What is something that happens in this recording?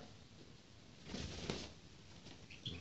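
A hawk flaps its wings in a short burst.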